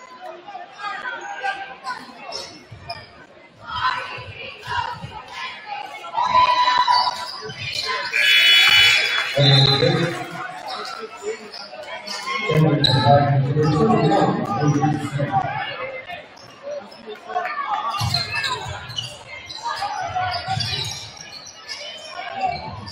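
A crowd in a large echoing gym cheers and chatters.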